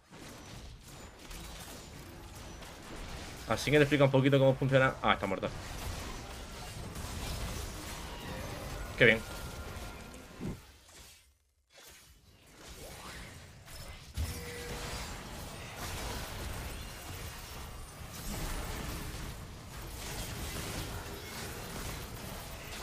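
Video game battle effects clash and zap.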